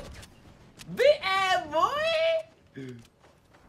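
A young man laughs.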